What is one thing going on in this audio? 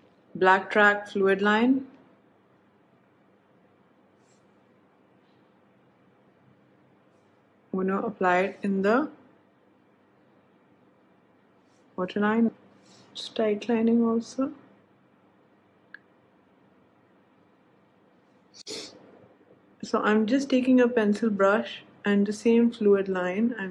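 A young woman talks calmly and close up, in short bursts with pauses.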